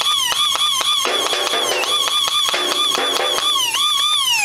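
An airsoft pistol fires several quick shots.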